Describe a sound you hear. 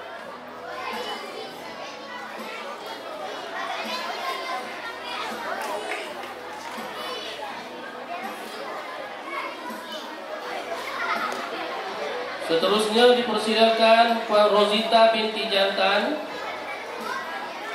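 A man speaks into a microphone over loudspeakers, in a large echoing space.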